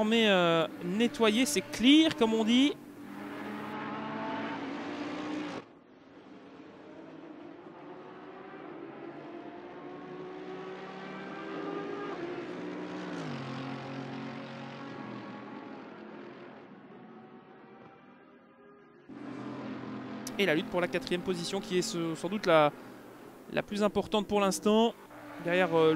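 Racing car engines roar and rise and fall in pitch as the cars change gear.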